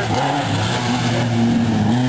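Water splashes loudly as a car drives through a shallow stream.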